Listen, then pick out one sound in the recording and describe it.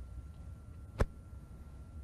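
A snooker ball is set down on the table with a sharp click.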